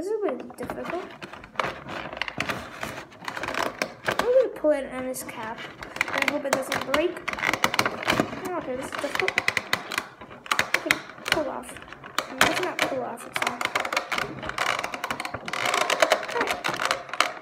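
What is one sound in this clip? Plastic taps and clatters against a plastic box.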